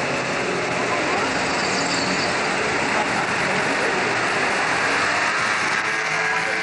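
Cars drive past on a street.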